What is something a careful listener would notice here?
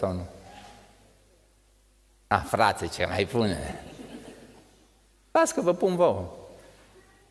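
An elderly man speaks into a microphone in a reverberant hall.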